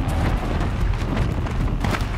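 Footsteps crunch quickly over snow.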